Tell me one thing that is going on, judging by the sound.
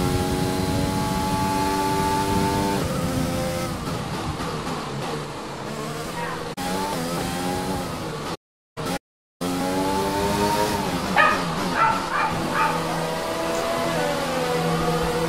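A racing car engine screams at high revs, dropping in pitch as the car brakes and rising again as it speeds up.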